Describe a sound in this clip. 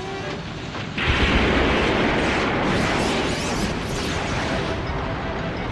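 A huge explosion roars and rumbles on.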